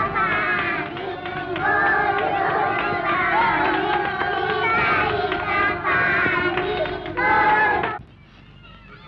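Children sing together in a ring game.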